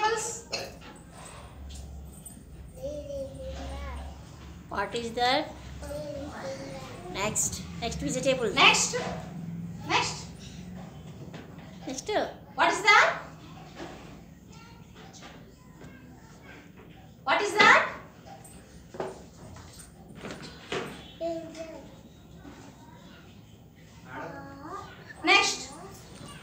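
A young boy speaks up close.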